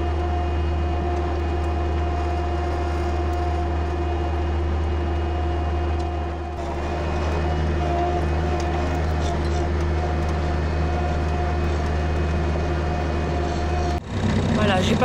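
A tractor engine hums steadily up close.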